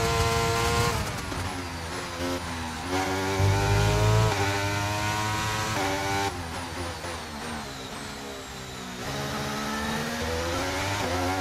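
A racing car engine drops in pitch as the car brakes and shifts down, then revs up again.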